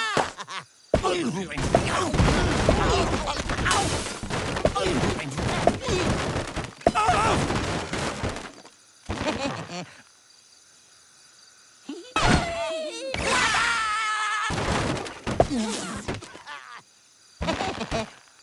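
Wooden blocks crash and tumble as a tower collapses.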